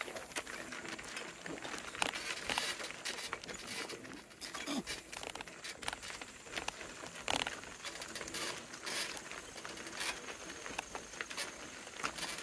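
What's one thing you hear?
Donkey hooves clop on a dirt path.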